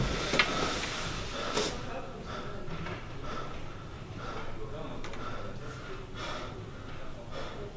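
A young woman breathes heavily and quickly close by.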